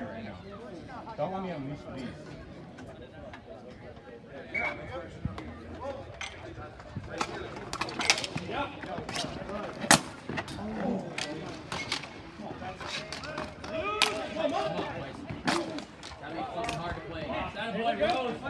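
Hockey sticks clack against a ball and against each other on a hard court.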